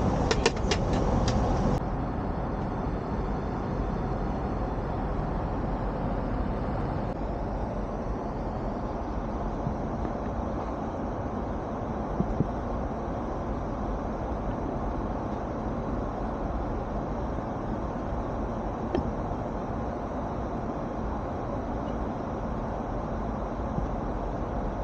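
Aircraft engines drone steadily in a cabin.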